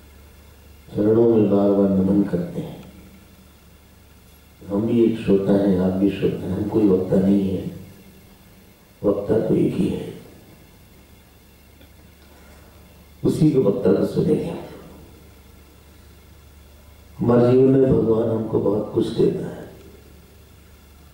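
A man speaks calmly into a microphone in short phrases, with pauses between them.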